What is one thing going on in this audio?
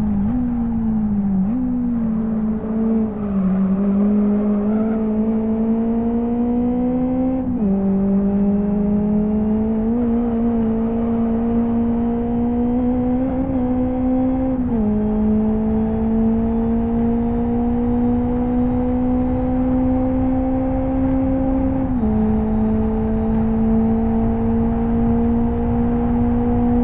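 A racing car engine revs high, dropping in pitch with each gear change and then climbing again.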